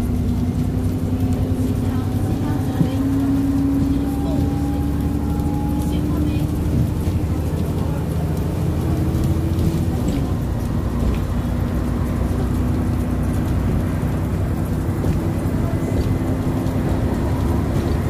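A bus rattles and creaks over the road.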